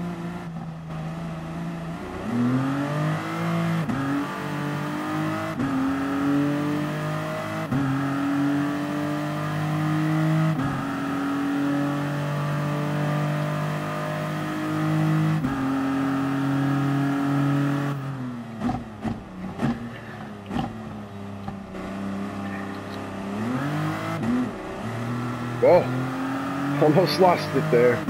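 A racing prototype's engine accelerates through the gears in a racing game.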